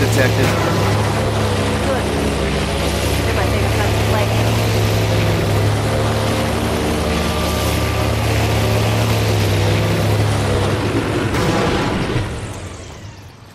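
A boat motor drones steadily and then fades away.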